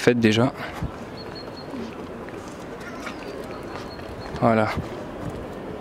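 A man speaks briefly outdoors, close by.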